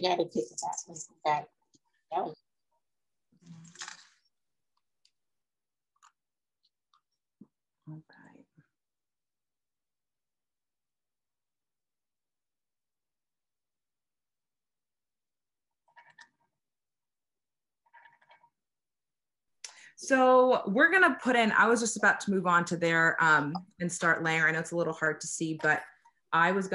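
A young woman talks calmly and close to a microphone, heard over an online call.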